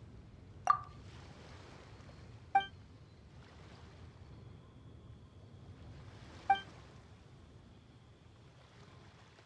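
Small waves lap gently on a shore.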